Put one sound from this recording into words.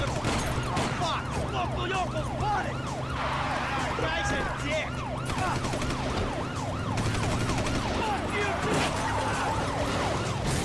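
A siren wails up and down, over and over.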